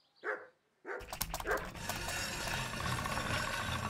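A blade grinds against a spinning grindstone with a steady rasp.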